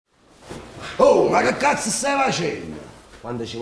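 A man shouts loudly and angrily up close.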